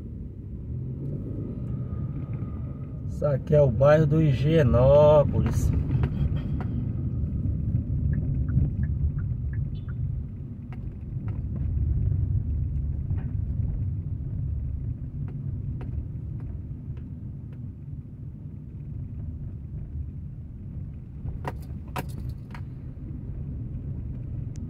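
A car engine rumbles steadily from inside a moving car.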